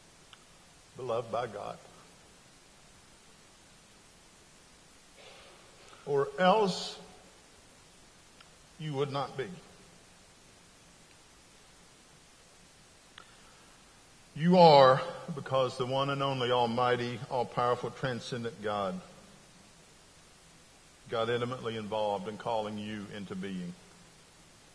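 A middle-aged man speaks slowly and deliberately into a microphone, with long pauses, in a large room.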